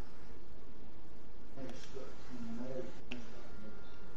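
A soft interface click sounds.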